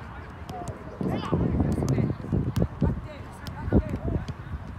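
Footsteps run on artificial turf close by.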